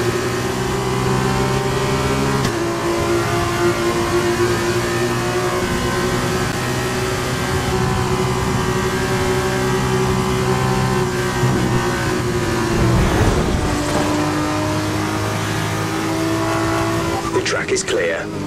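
A racing car engine roars at high revs, shifting gears as it speeds along.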